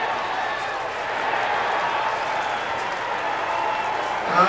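A crowd cheers loudly as a play ends.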